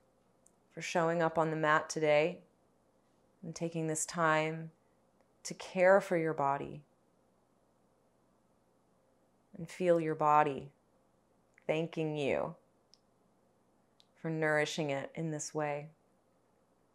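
A young woman speaks calmly and softly close to a microphone, with pauses.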